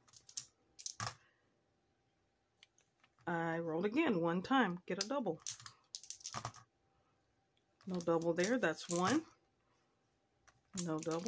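Small dice clatter onto a hard board.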